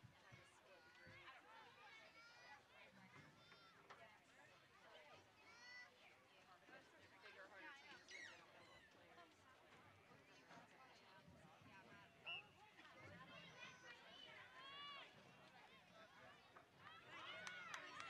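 Young women shout and call out across an open field outdoors.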